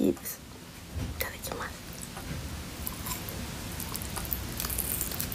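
A young woman chews food with crisp, wet mouth sounds close to a microphone.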